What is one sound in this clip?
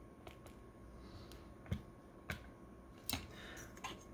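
A plastic device is set down with a light clack.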